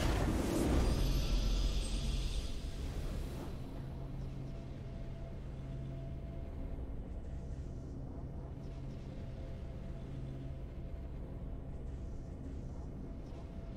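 Quiet victory music plays steadily.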